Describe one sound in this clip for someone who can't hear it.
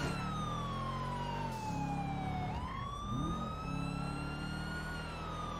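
A car engine roars, its pitch sinking and then jumping back up as the gear changes.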